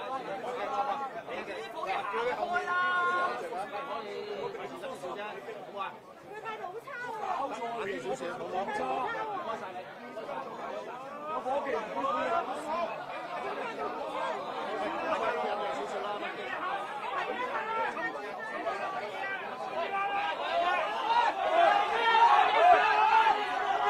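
A middle-aged man shouts angrily up close.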